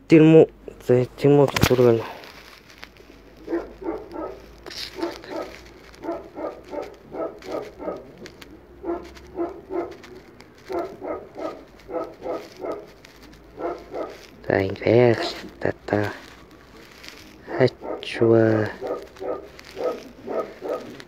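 A young man talks close to a phone microphone.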